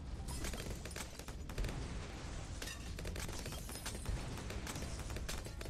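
Video game balloons pop and crackle in rapid bursts.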